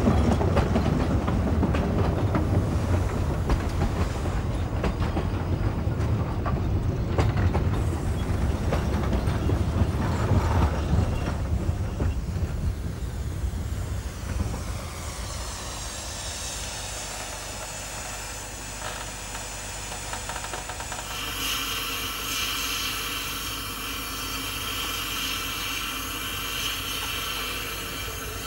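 Steam hisses loudly from beneath a train.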